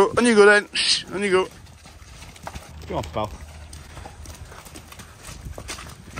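Cattle hooves squelch through mud.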